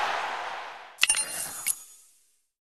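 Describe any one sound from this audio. Coins clink and jingle in quick bursts.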